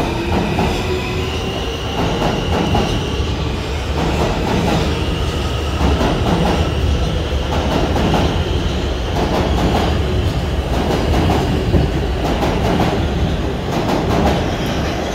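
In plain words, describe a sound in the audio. A subway train rumbles and clatters past at speed, close by.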